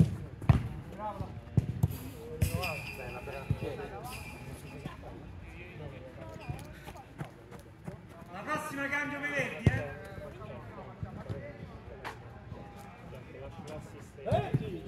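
Men shout to each other across an outdoor football pitch.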